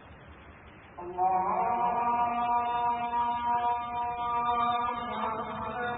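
A man chants in long, drawn-out tones through a microphone.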